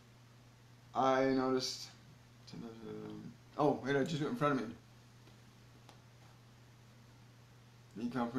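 An older man speaks calmly and close up, in short phrases.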